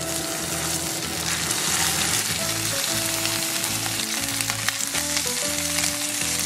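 Patties sizzle in hot oil in a pan.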